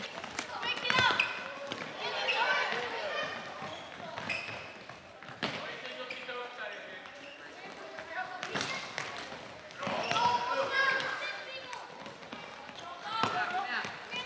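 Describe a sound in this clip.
Plastic sticks smack a ball with sharp cracks.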